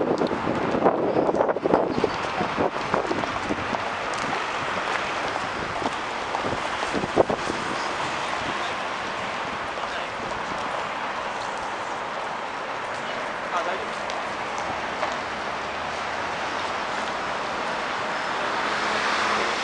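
A busy city street hums with steady traffic and crowd noise outdoors.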